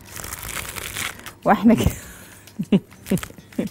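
Fresh herbs rustle softly as they drop into a glass bowl.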